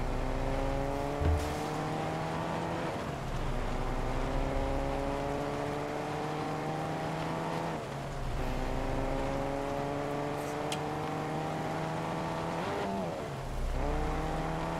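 A car engine revs up through the gears, rising in pitch and dropping at each shift.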